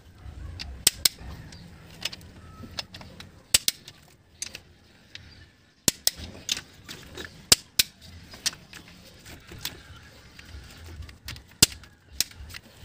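Metal tools clink against an engine's metal parts.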